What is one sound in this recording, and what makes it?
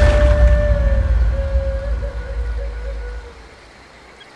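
Water splashes and churns.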